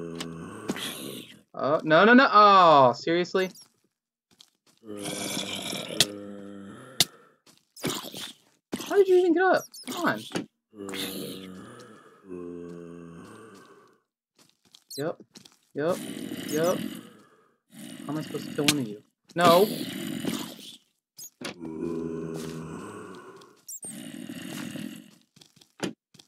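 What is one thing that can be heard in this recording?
A creature groans low and hoarsely, again and again.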